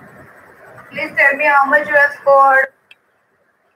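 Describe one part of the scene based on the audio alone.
A woman speaks close to a microphone, with animation.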